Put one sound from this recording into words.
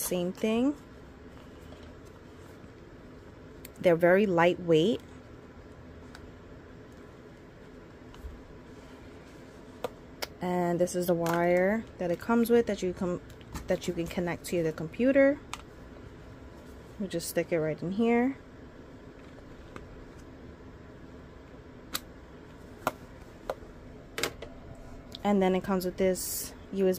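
Plastic headphones click and rustle as hands handle them.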